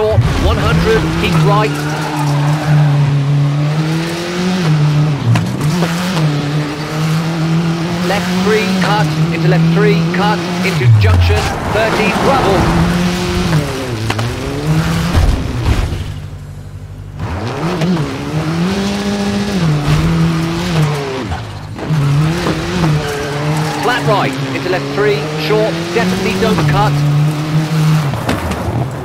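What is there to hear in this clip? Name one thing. A rally car engine roars, revving up and down as gears shift.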